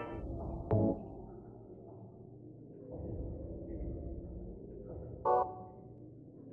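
A short electronic chime sounds twice.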